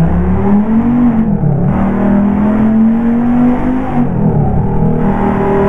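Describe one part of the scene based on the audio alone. A car engine hums steadily, its pitch rising and falling slightly as it drives.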